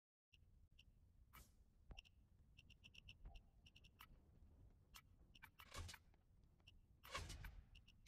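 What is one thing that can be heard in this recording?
Short menu clicks and blips sound in quick succession.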